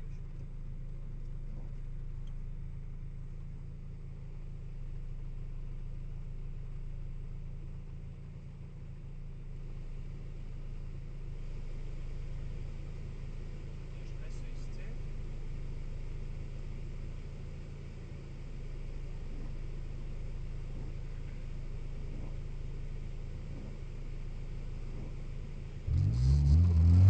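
A car engine hums low, heard from inside the car.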